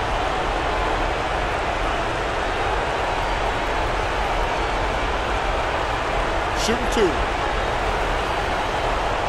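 A large crowd murmurs steadily in a big echoing arena.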